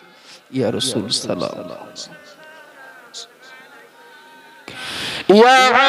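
A man sings loudly into a microphone, heard through loudspeakers with echo.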